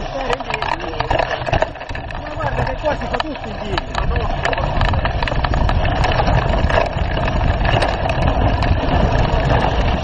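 Bicycle parts clatter and knock over bumps.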